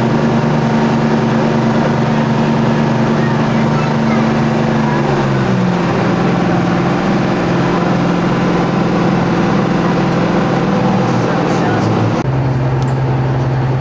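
A boat engine drones steadily, shifting pitch now and then.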